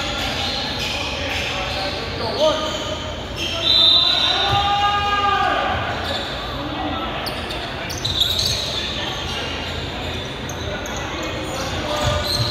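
Young men shout and call to each other in a large echoing gym.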